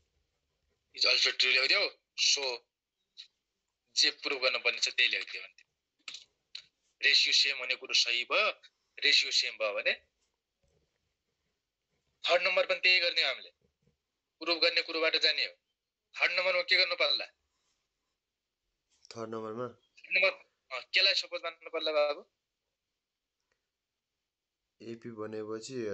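A man speaks calmly into a close microphone, explaining in short phrases with pauses.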